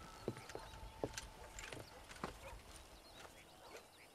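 Boots thud on wooden boards.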